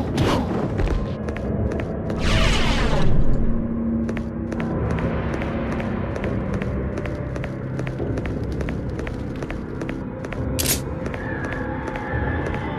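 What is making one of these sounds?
Footsteps echo steadily on a stone floor in a large, echoing hall.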